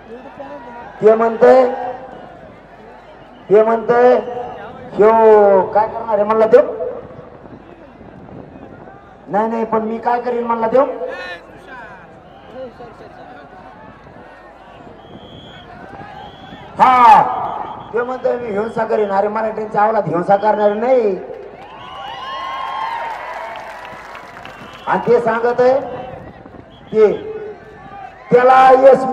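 A man speaks forcefully into a microphone, heard through loudspeakers outdoors, in bursts with pauses.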